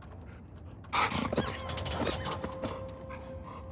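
A young woman answers with animation nearby.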